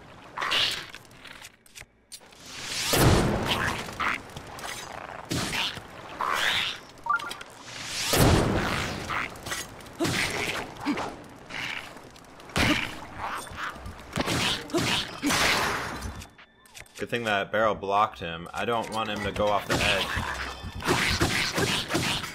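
A sword clangs against a monster in quick strikes.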